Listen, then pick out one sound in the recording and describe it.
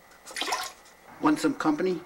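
A toilet flushes with rushing, swirling water.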